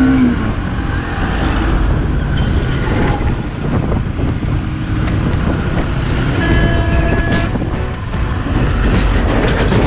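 A truck engine rumbles close by as it passes.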